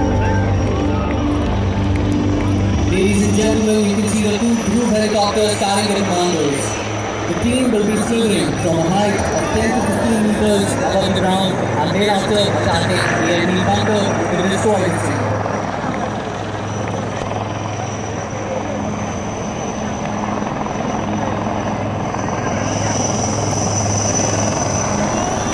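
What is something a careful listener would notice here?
A helicopter's rotor thuds and whirs steadily overhead.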